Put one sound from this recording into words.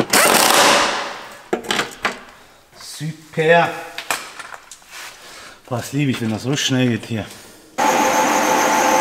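An air-powered tool whirs loudly in short bursts.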